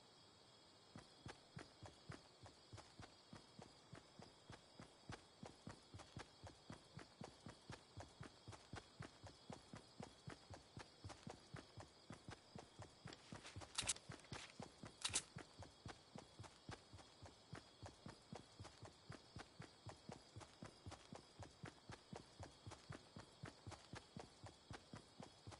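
Footsteps run quickly and steadily over grass.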